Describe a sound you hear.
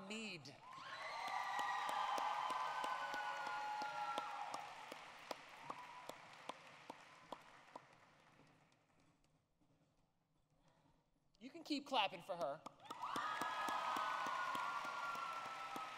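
A crowd cheers and applauds.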